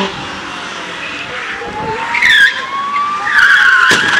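A small car engine whines as it accelerates toward the listener.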